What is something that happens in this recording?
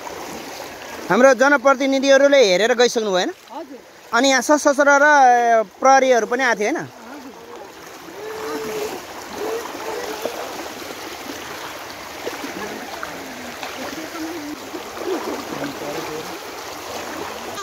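Feet splash and slosh through shallow flowing water.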